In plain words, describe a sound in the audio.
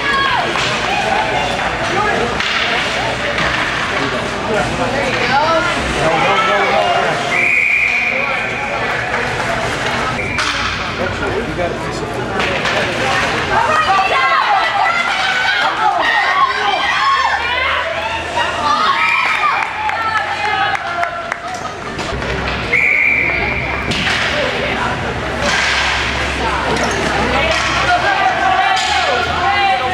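Skates scrape and swish across the ice.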